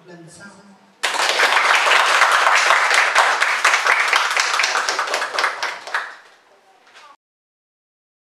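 People applaud loudly.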